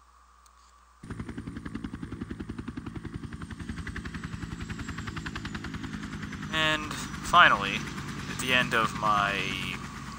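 A helicopter's rotor blades chop loudly overhead.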